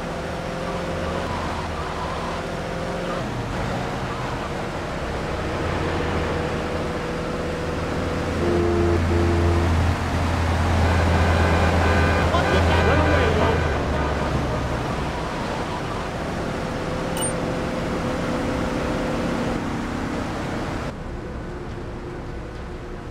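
A video game SUV's engine drones as it drives along a street.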